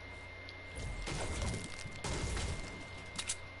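A pickaxe strikes a wall with heavy thuds.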